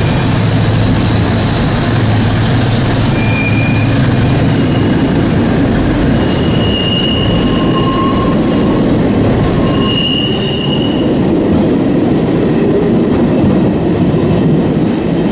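A train rumbles past loudly, echoing in a tunnel.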